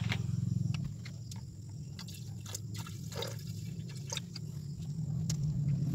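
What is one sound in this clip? Water pours from a plastic bottle into a glass beaker.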